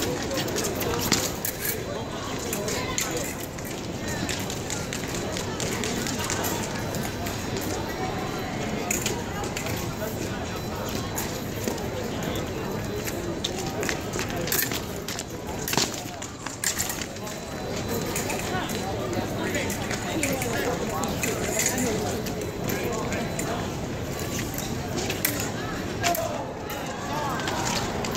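A large crowd murmurs steadily in a big echoing hall.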